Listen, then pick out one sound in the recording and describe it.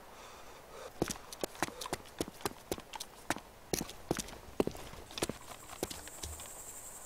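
Footsteps crunch quickly on the ground.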